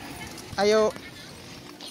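A small child lets out a high squeal.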